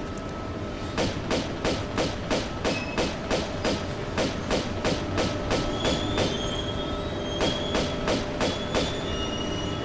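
Pistols fire in a rapid series of sharp shots.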